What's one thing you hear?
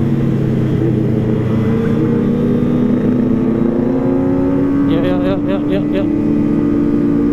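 A motorcycle engine hums steadily, slowly rising in pitch.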